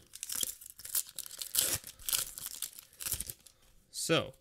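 A plastic wrapper crinkles and tears as it is opened.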